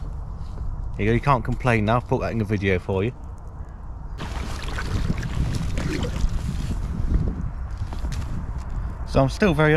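A man talks calmly close to the microphone.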